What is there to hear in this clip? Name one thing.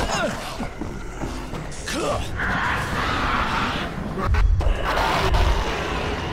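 Heavy blunt blows thud into flesh.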